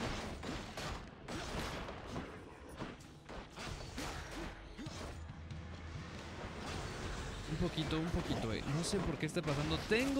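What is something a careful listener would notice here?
Swift strikes and magical blasts crackle and thud in a fight.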